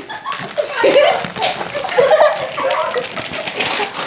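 A plastic snack packet crinkles.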